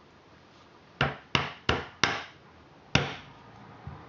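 A hammer taps plastic pegs into a plastic loom.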